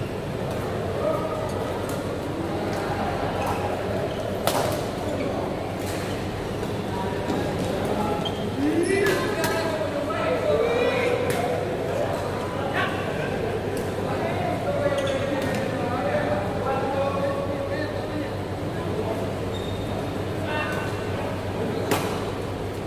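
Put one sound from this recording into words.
Young men call out and chatter across a large echoing hall.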